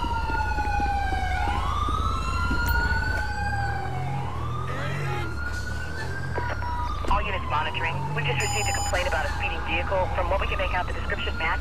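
A siren wails, rising and falling.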